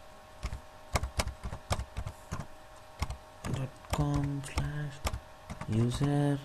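Keys click quickly on a keyboard.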